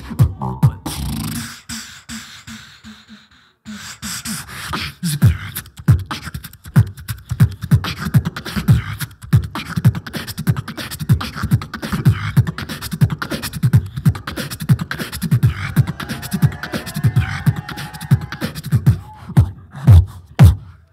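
A young man beatboxes fast, punchy drum sounds into a microphone through loudspeakers in a large echoing hall.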